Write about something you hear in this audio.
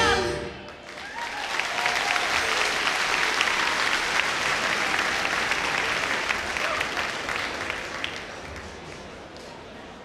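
A large audience claps and cheers loudly, then fades away.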